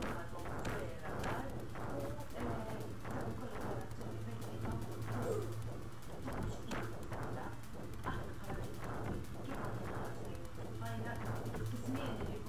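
Arcade sound effects zap and crackle as creatures are hit.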